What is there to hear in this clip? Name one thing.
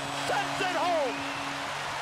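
A hockey stick slaps a puck.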